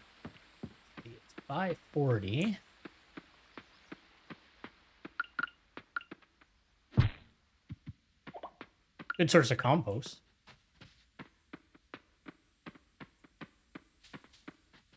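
Footsteps patter quickly on a dirt path.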